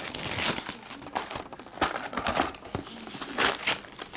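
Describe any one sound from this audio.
A cardboard box lid flaps open.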